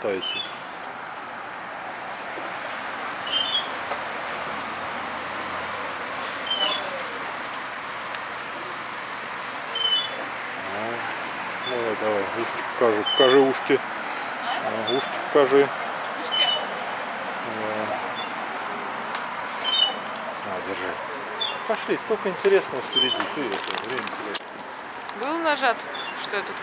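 A swing on metal chains squeaks with each swing.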